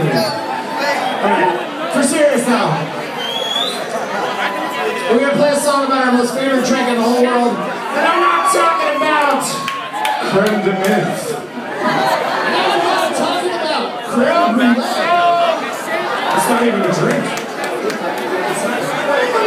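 A man sings into a microphone over the band.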